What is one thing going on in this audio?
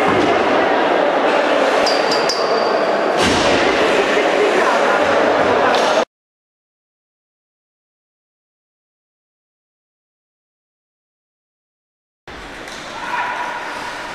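Ice skates scrape and glide on an ice rink.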